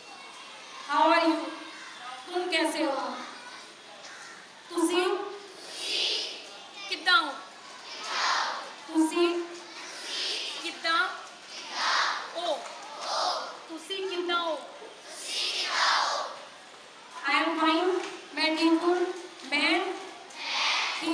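A woman speaks loudly into a microphone through loudspeakers, in short phrases.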